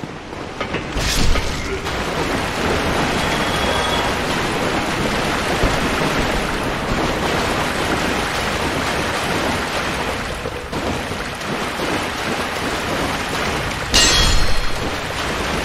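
A sword strikes with a sharp metallic clang.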